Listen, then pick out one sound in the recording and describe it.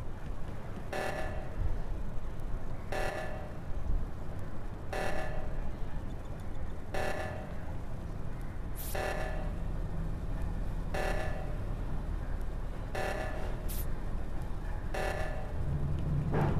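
An alarm blares in short bursts about every two seconds.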